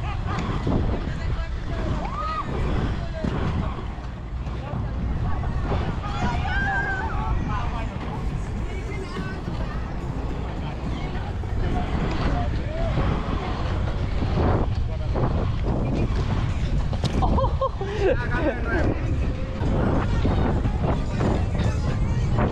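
Inline skate wheels roll and rumble over rough asphalt.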